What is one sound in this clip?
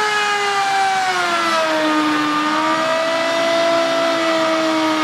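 A router motor whines loudly and steadily, its pitch dipping slightly as it cuts into wood.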